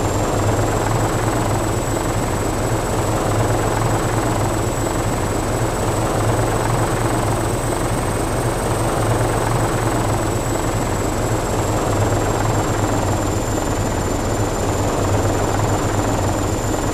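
An aircraft engine drones steadily with a high whine.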